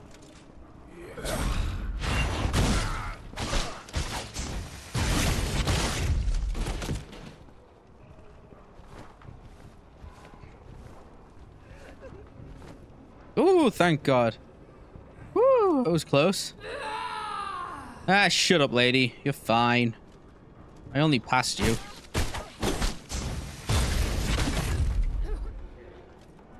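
Blades slash and clash in a heavy fight.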